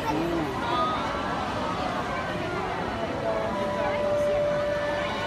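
A large outdoor crowd chatters and calls out all around.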